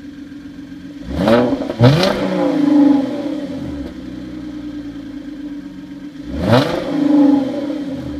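A car engine revs sharply and roars, then falls back to idle, several times.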